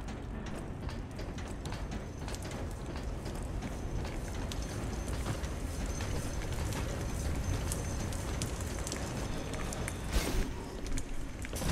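Footsteps clank on metal walkways.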